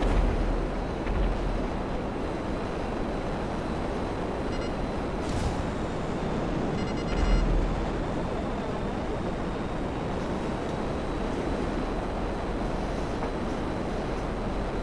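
A jet engine roars steadily with a deep rushing noise.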